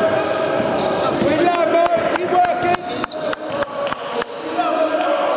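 A basketball bounces on the floor with echoing thuds.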